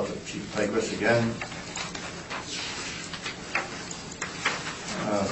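A man speaks calmly at a distance, heard through a room microphone.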